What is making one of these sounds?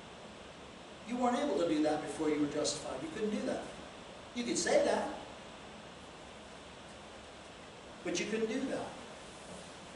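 An older man speaks with animation, pausing between phrases.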